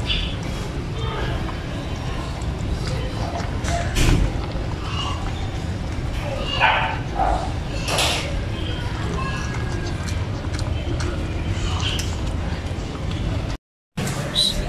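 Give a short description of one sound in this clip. A dog eats noisily from a metal bowl, lapping and chewing.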